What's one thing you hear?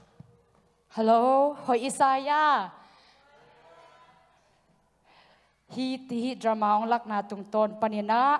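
A young woman sings through a microphone.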